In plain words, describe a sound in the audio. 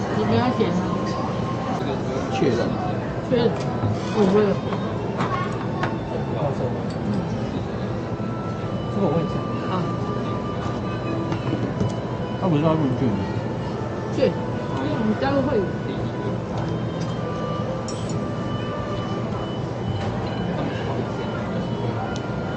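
A crowd murmurs in a busy room.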